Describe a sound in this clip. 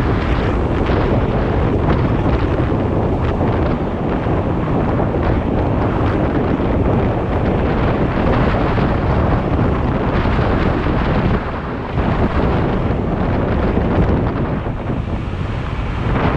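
Tyres of an electric scooter hum on a paved road.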